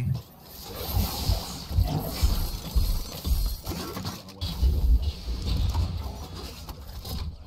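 A young man talks with animation through a microphone.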